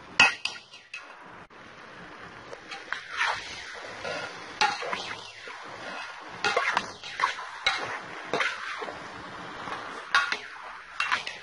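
A metal spoon scrapes and clatters against a metal pot of vegetables.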